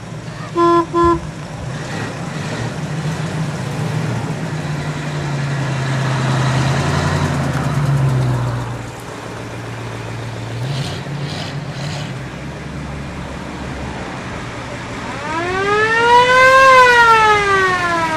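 Car engines rumble and idle nearby.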